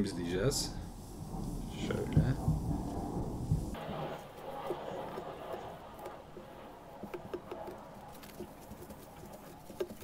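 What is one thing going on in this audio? A tissue rubs softly across paper.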